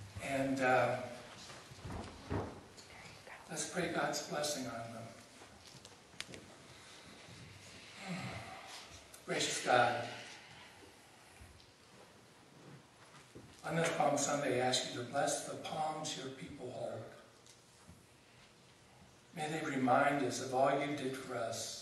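A middle-aged man speaks calmly in an echoing hall, with pauses.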